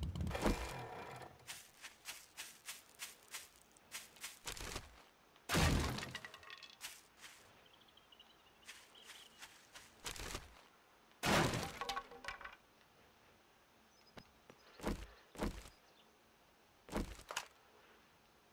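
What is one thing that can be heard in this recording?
Footsteps rustle through grass and undergrowth.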